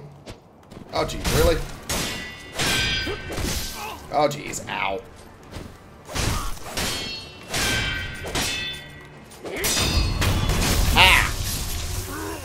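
Steel blades clash and ring sharply in a fight.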